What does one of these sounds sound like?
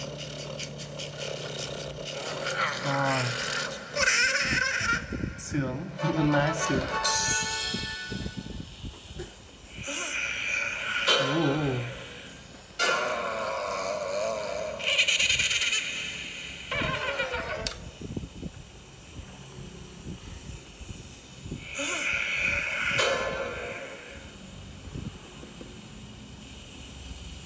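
Cartoonish game sound effects and jingles play from a small tablet speaker.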